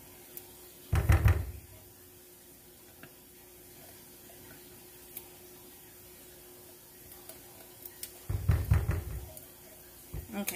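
A spatula knocks loudly against a metal can.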